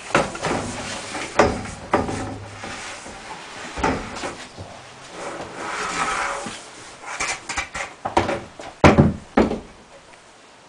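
A plastic pipe knocks and scrapes as it is handled.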